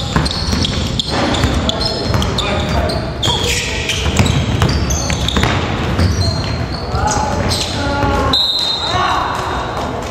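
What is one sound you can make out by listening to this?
Sneakers squeak sharply on a hard floor in an echoing gym.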